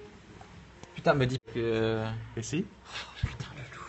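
A young man laughs loudly, close by.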